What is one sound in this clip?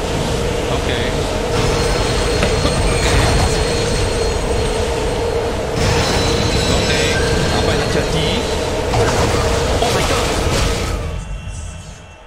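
A heavy low rumble and a droning hum fill the air.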